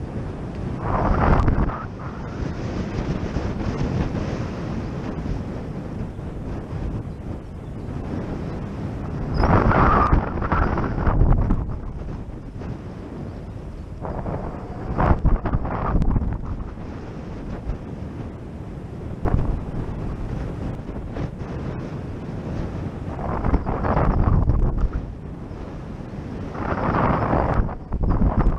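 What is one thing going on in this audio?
Wind buffets loudly outdoors, rising and falling in gusts.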